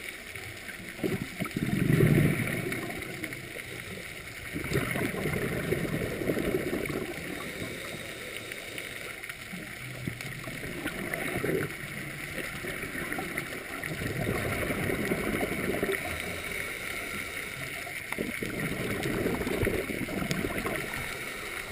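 Air bubbles rush and gurgle from a scuba regulator underwater in regular bursts.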